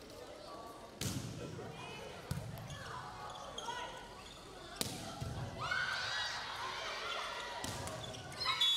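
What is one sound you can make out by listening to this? A volleyball is hit with sharp smacks that echo through a large hall.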